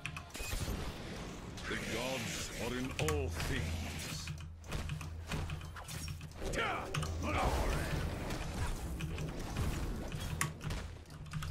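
Game combat effects crackle and zap.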